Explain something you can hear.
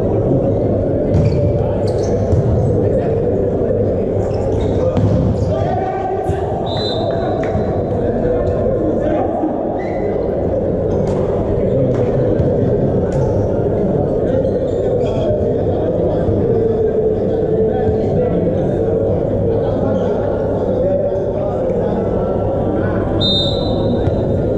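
A crowd of spectators and players cheers and chatters in a large echoing hall.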